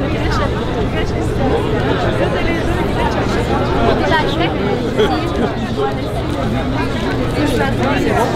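A crowd of men and women chatter and talk at once outdoors.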